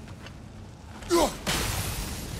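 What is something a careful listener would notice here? An axe whooshes through the air and strikes with a loud crack.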